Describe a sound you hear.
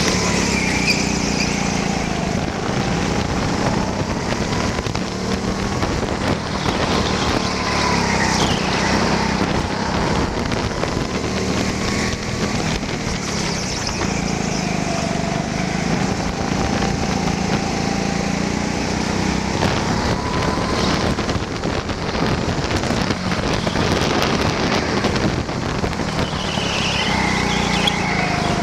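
A go-kart engine whines loudly up close, rising and falling in pitch as it speeds up and slows down.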